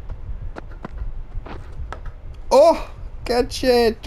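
A cricket bat strikes a ball with a sharp knock.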